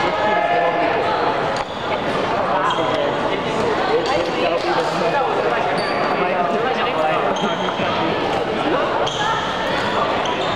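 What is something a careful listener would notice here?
Shuttlecocks are struck with rackets in quick sharp taps.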